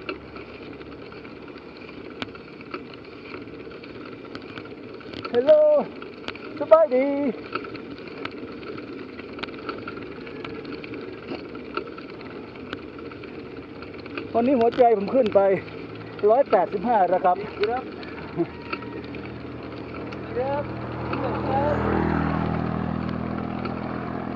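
Bicycle tyres roll and hum steadily on a paved road.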